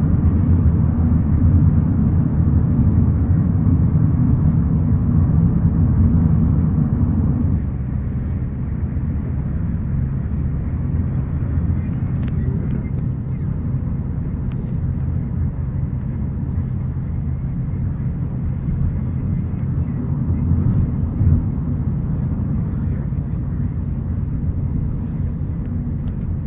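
A car's engine and tyres rumble on the road, heard from inside the moving car.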